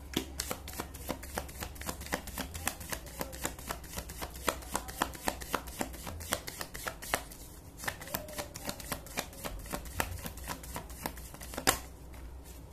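Playing cards are shuffled with quick, rapid flicks.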